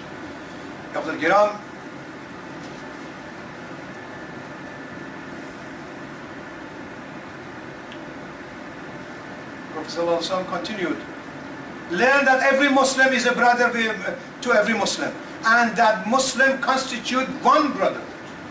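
An elderly man recites calmly in a room with a slight echo.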